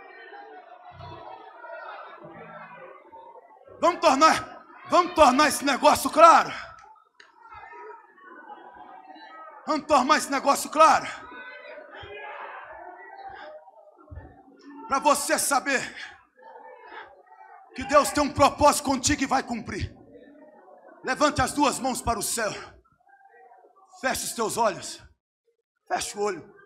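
A crowd murmurs and prays aloud in the background.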